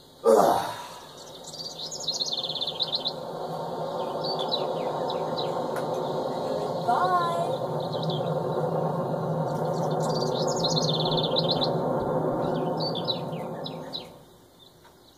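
An airship engine drones steadily through a television speaker, then cuts off.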